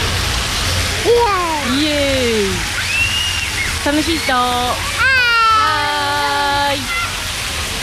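A toddler babbles and squeals happily close by.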